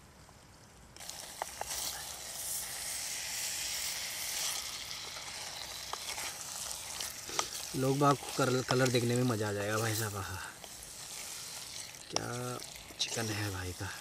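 A wooden spoon scrapes and stirs in a metal pot.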